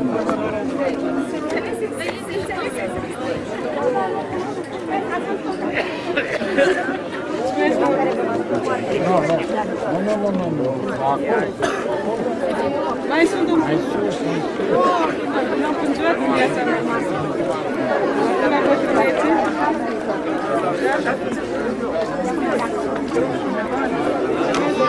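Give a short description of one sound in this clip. A crowd of children chatters outdoors.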